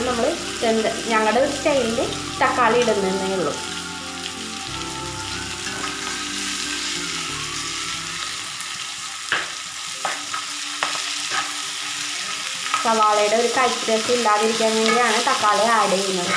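A spatula scrapes and knocks against a metal pan.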